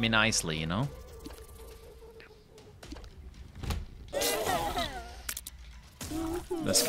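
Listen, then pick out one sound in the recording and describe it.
Video game sound effects pop and splat.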